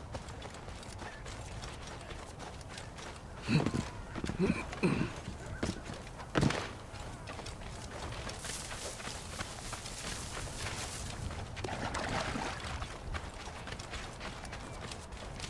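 Footsteps run quickly through dry grass and dirt.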